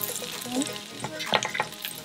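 A spatula scrapes against a plate.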